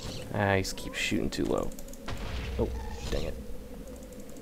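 A creature shoots fireballs that burst with dull thuds.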